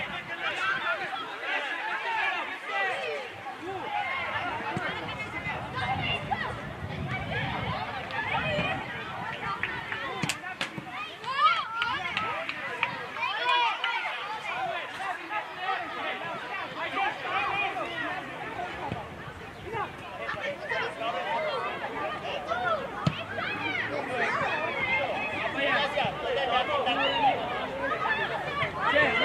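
Children shout and call out to each other across an open pitch.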